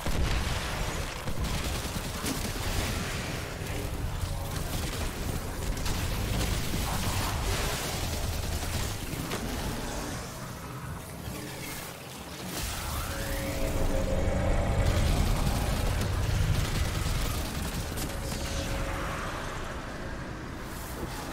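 Guns fire in rapid bursts with loud blasts and explosions.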